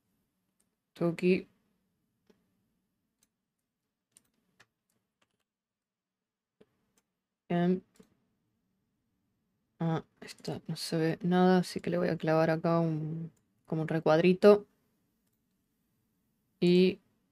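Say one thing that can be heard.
A young woman speaks calmly and closely into a microphone, in short bursts.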